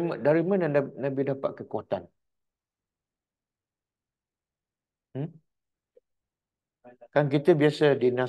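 An older man speaks calmly into a microphone, pausing between phrases.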